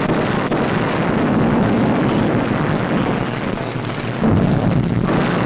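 Explosions boom and rumble heavily.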